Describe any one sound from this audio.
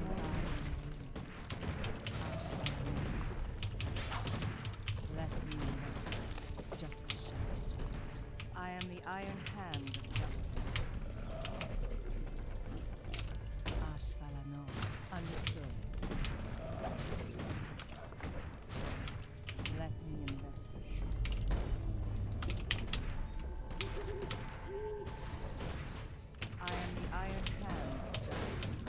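Game battle sounds clash and thud throughout.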